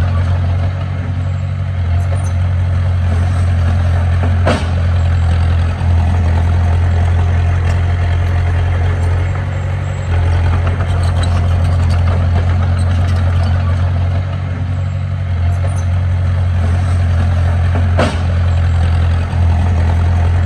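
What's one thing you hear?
A bulldozer's diesel engine rumbles steadily close by.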